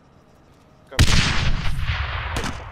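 A loud explosion booms nearby and rumbles away.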